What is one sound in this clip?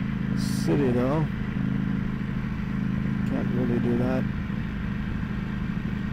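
A motorcycle engine hums steadily up close and briefly revs up twice.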